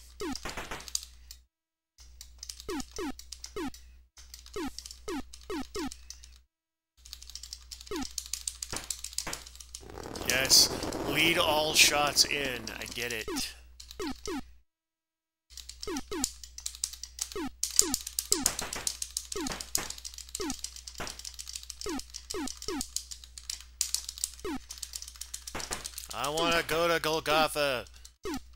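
Retro video game laser shots zap in quick bursts with falling pitch.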